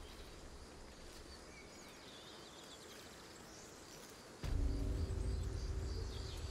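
Footsteps patter on a dirt path.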